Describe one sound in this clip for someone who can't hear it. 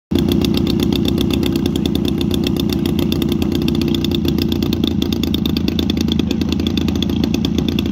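A small model plane engine runs loudly close by with a fast, rattling buzz.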